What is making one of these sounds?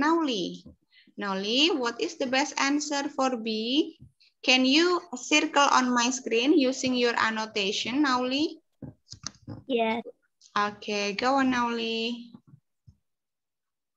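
A woman speaks clearly and steadily through an online call.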